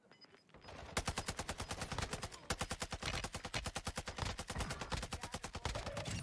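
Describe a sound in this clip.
An automatic rifle fires rapidly.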